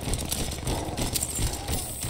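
A shotgun is reloaded with metallic clicks.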